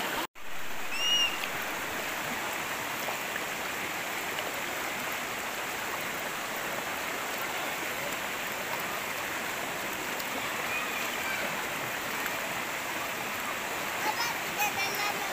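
A small child squeals and shouts playfully.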